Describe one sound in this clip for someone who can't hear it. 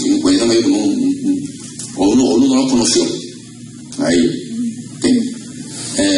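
A man preaches with fervour through a microphone and loudspeakers, his voice echoing in a large hall.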